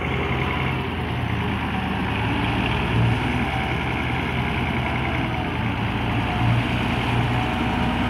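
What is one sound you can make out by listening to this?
A combine harvester engine drones loudly and steadily close by.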